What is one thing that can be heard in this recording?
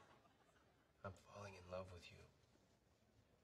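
A man speaks softly and earnestly.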